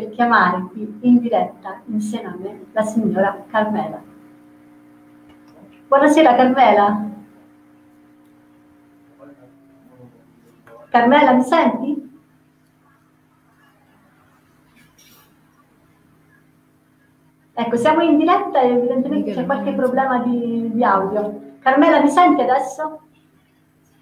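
A young woman speaks brightly into a close microphone.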